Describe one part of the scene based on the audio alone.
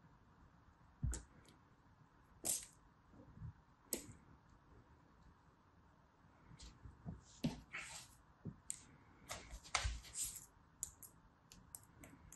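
Fingers squeeze and crumble soft sand, with soft crunches and crackles.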